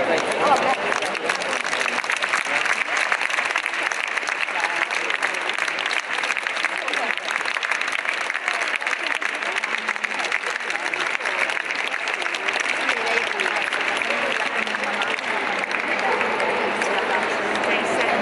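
A crowd claps steadily.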